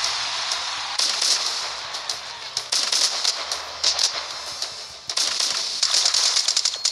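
A game's gun fires rapid shots.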